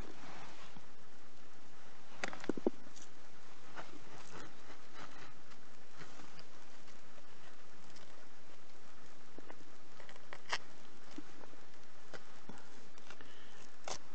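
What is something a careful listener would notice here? Fingers scratch and crumble loose soil.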